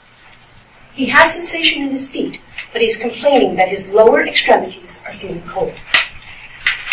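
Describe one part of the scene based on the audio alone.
A woman speaks clearly through a microphone in a large room.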